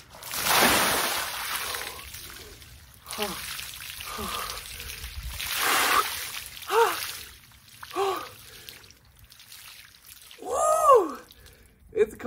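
A young man gasps and exclaims loudly from the cold.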